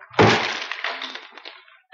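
Food crunches and splatters as it is smashed.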